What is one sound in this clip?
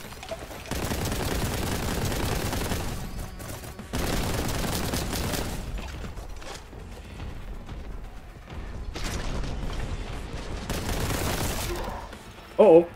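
A rapid-fire gun shoots in long, loud bursts.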